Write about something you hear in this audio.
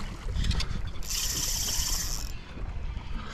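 A fishing reel's drag buzzes steadily as line pulls out.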